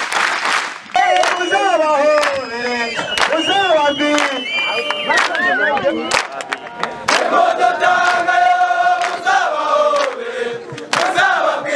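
A crowd of men sings together loudly.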